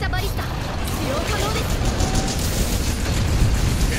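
Flames roar.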